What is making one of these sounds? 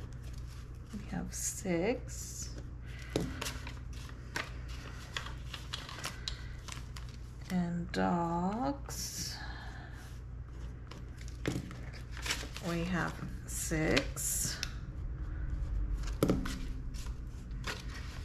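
Paper banknotes rustle in hands.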